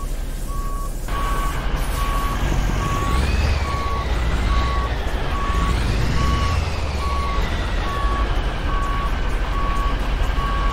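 A reversing alarm beeps at a steady pace.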